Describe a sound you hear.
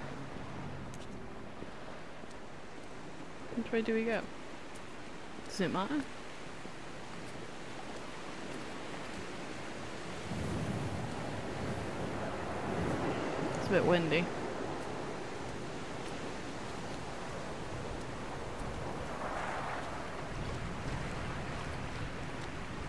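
Waves wash softly against a rocky shore below.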